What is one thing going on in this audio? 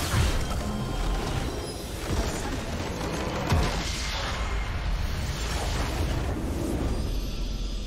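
Game spell effects crackle and whoosh loudly.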